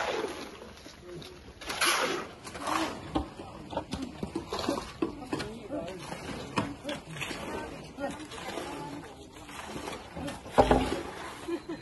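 Shovels scrape through wet concrete.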